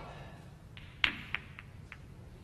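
Snooker balls knock together with crisp clacks.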